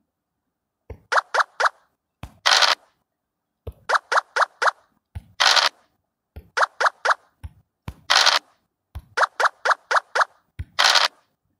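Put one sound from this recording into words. A game piece hops across the board with quick clicking steps.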